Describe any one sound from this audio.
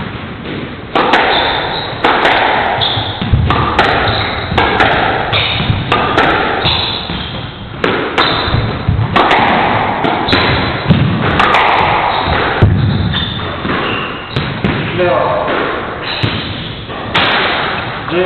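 A squash ball smacks hard against the walls, echoing in a large hall.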